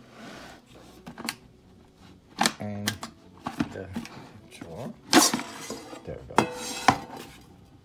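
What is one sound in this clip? A plastic basket slides and clicks against a fryer housing.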